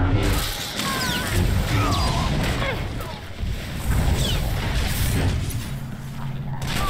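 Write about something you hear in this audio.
Lightsabers hum and swish through the air.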